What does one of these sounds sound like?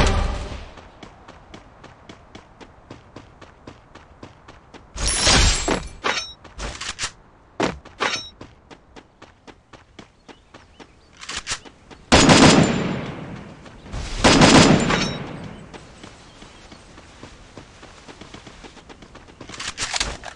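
Quick footsteps patter steadily on the ground.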